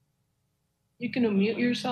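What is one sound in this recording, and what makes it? A woman speaks calmly through an online call.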